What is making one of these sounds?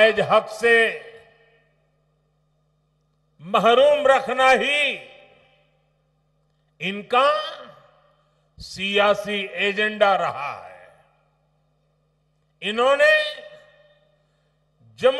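An elderly man speaks forcefully in short bursts through a microphone and loudspeakers, with pauses in between.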